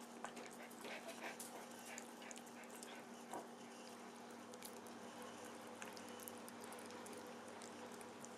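A cat chews and crunches on a crisp vegetable close by.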